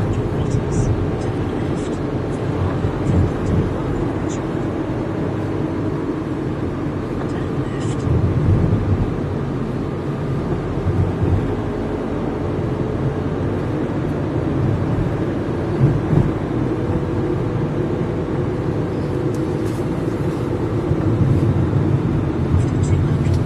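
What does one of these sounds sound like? Car engines hum in steady traffic nearby.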